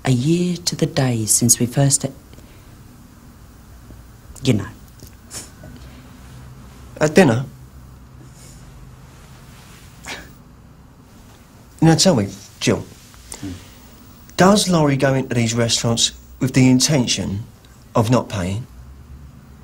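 A middle-aged woman speaks quietly and earnestly, close by.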